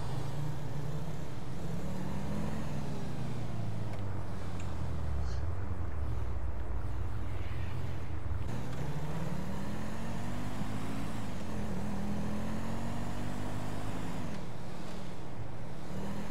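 A car engine roars and revs up and down as it speeds along.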